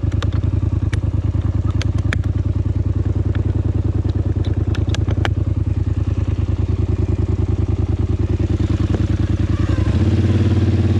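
An all-terrain vehicle engine idles with a steady rapid chugging.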